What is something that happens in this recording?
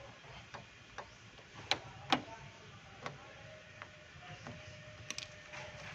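A small metal tool clicks and scrapes against a plastic car door handle.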